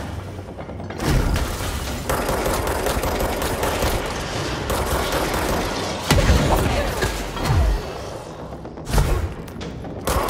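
Heavy booming impacts thud.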